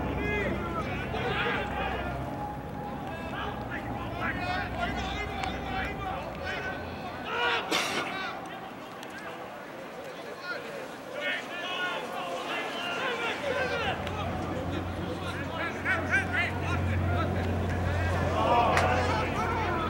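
Men shout and call out across an outdoor field.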